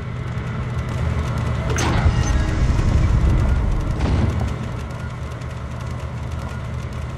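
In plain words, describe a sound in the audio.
Many clocks tick steadily.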